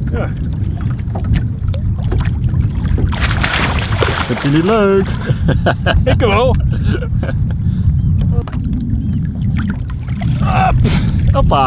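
Water splashes as a fish thrashes at the surface.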